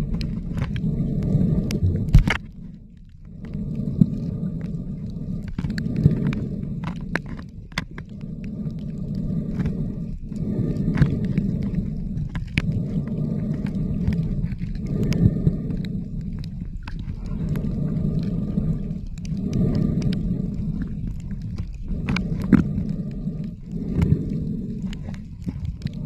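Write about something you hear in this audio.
A swimmer breathes slowly and heavily through a snorkel, heard muffled underwater.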